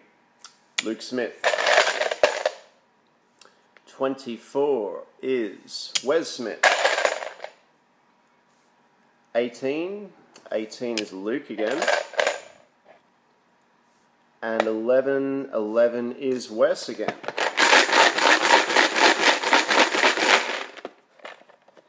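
Plastic tokens rattle as a box is shaken.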